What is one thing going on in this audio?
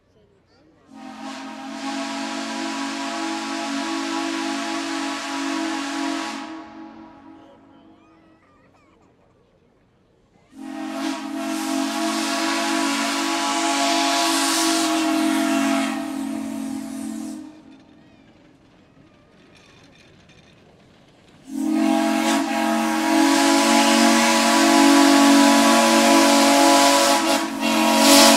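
A steam locomotive's whistle blows in long, loud blasts.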